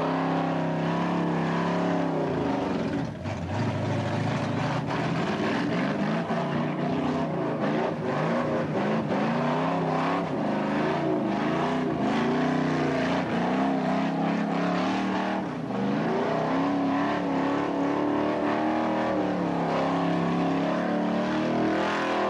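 Tyres screech as they spin on tarmac.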